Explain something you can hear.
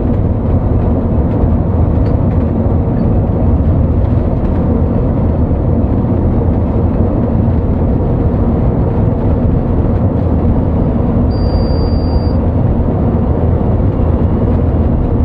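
A large engine drones steadily as a bus drives along a highway.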